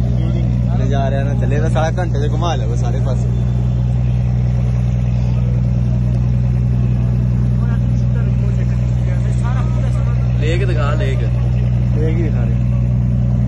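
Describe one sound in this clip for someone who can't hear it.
A young man speaks nearby over the motor.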